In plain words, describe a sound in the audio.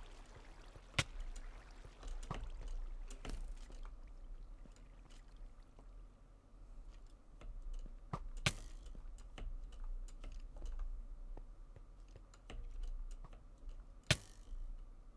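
Arrows hit with sharp thuds.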